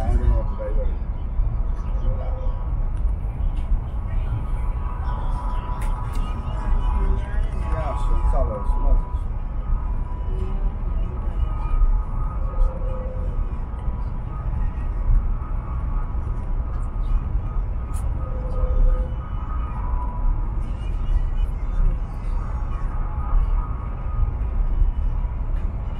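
A train rumbles steadily at speed, heard from inside a carriage.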